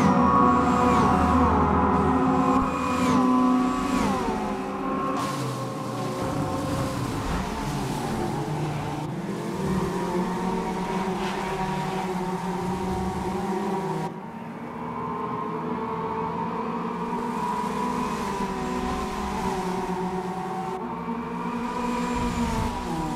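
Racing car engines roar loudly, their pitch dropping sharply with each gear shift.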